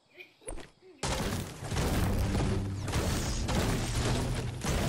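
A pickaxe chops repeatedly into a tree trunk.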